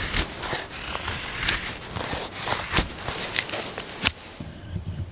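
Wood shavings rustle and crackle as a hand works them.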